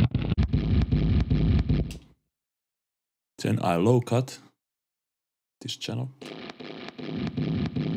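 A distorted electric guitar plays riffs through an amplifier.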